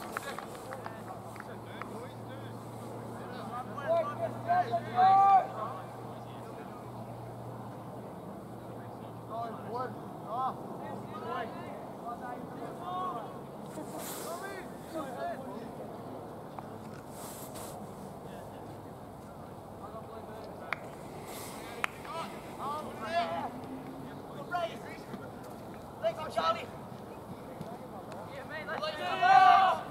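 Young women shout and call out across an open field outdoors.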